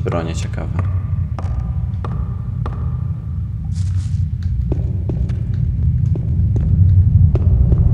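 Footsteps knock on wooden rungs and planks.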